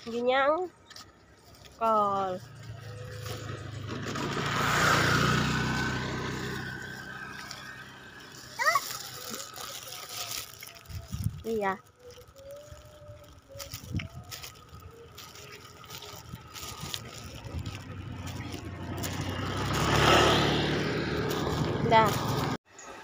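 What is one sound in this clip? A young child speaks in a high voice nearby.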